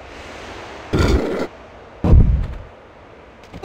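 A heavy thud of a body landing booms loudly.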